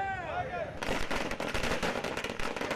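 A firecracker bursts with a loud bang.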